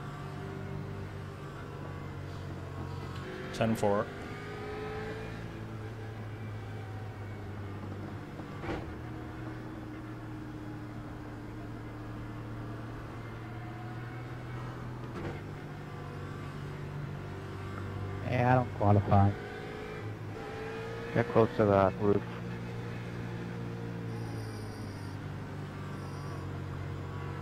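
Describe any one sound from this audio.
A racing car engine drones steadily and rises and falls with the throttle.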